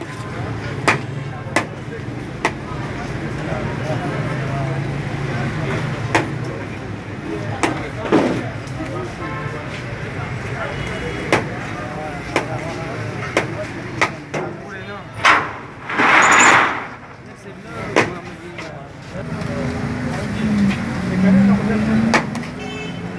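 A metal spoon clinks against plates.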